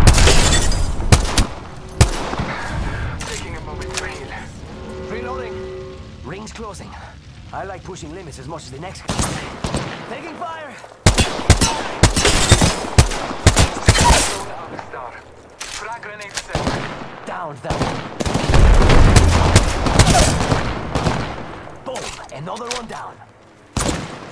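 Rapid gunfire bursts loudly and close by.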